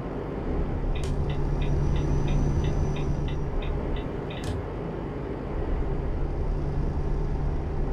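A diesel truck engine drones while cruising on a highway.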